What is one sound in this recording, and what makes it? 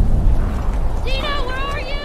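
A horse trudges through deep snow.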